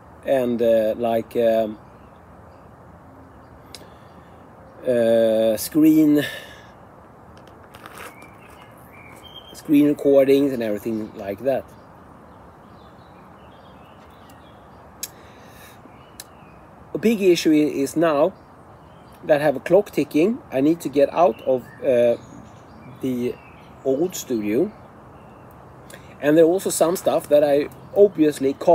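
A man talks calmly and casually, close by, in bursts with pauses.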